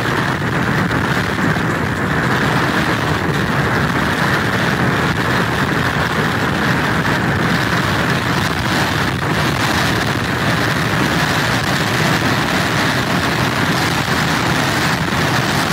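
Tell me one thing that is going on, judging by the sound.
Heavy surf crashes and churns nearby.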